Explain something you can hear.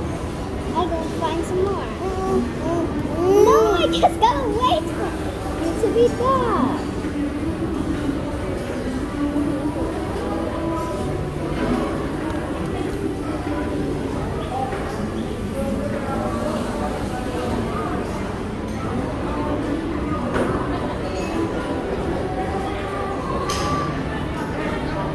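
Young children talk and chatter close by.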